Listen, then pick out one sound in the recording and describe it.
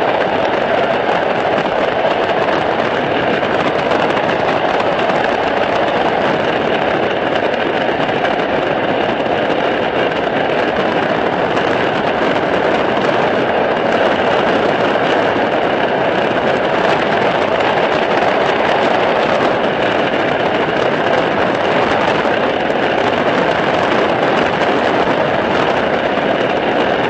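Wind roars through an open door of a light aircraft in flight.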